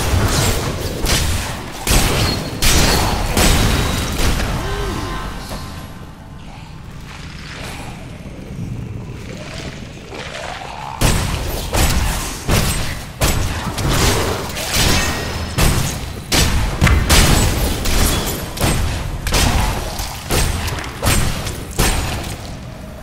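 Weapons strike and crunch against monsters in rapid, heavy blows.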